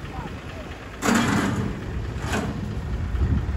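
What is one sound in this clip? A metal ramp clanks against a truck.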